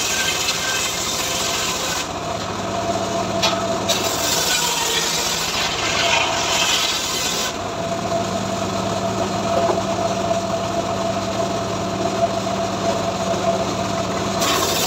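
A sawmill engine drones steadily.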